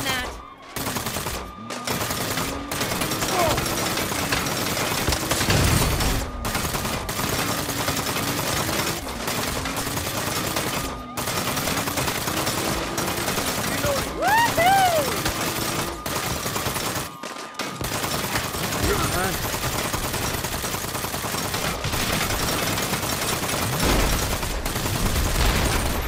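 Police sirens wail and rise and fall.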